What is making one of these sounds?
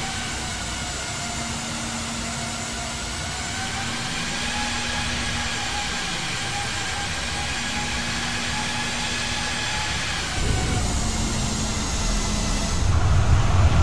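Jet engines whine steadily.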